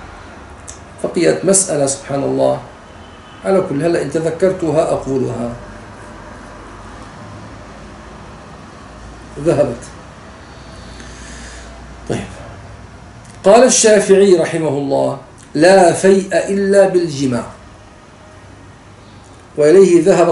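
A middle-aged man speaks calmly and with pauses, close to a microphone.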